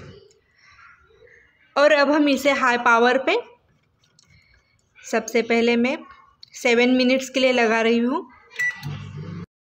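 Microwave buttons beep as they are pressed.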